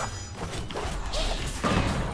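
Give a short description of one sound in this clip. Magic blasts and whooshes ring out during a fight.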